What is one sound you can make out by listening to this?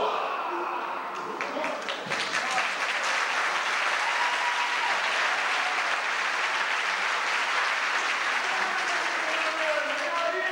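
A crowd of young performers shouts and cheers loudly.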